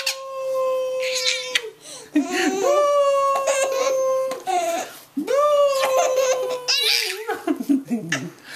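A baby squeals and laughs loudly close by.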